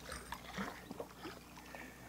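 A fishing reel clicks as its handle is cranked.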